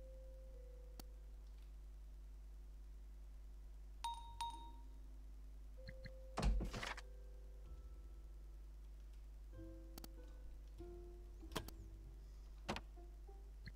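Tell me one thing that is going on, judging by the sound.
Short clicks sound now and then.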